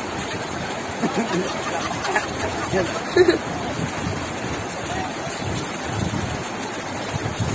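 Floodwater rushes loudly and steadily.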